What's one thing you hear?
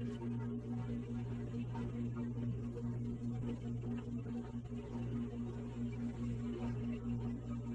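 Video game pause music loops with a steady, pulsing beat.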